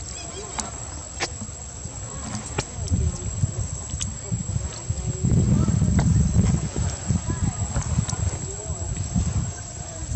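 Young monkeys squeak softly as they tussle.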